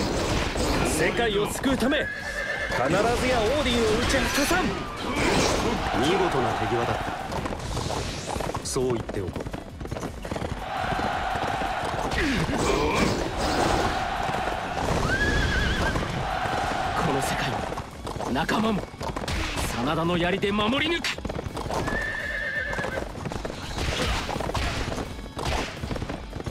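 Weapons clash and slash repeatedly.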